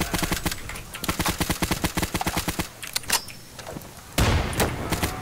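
A rifle magazine clicks and clatters during a reload.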